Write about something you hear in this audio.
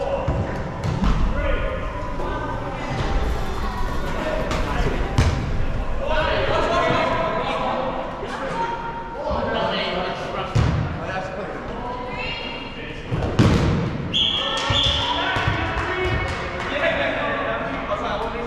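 Balls thud hard in a large echoing hall.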